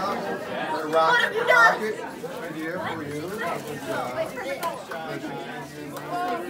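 A crowd of adults and children chatters all around.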